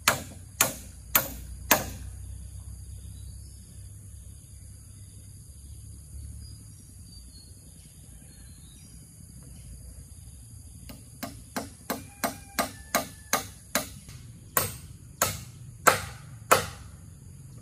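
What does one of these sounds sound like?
A hammer knocks sharply on bamboo poles outdoors.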